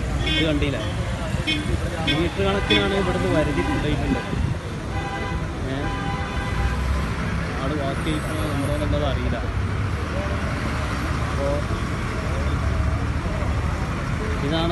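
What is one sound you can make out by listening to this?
Road traffic rumbles steadily nearby.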